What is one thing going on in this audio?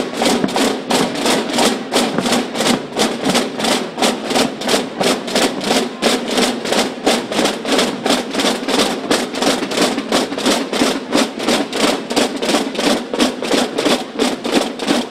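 A marching band of many drummers beats drums in a fast, steady rhythm.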